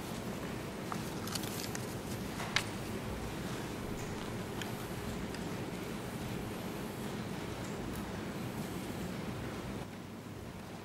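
An elderly man speaks quietly into a microphone.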